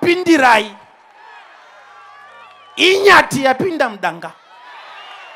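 A man preaches loudly and with animation through a microphone, in short bursts.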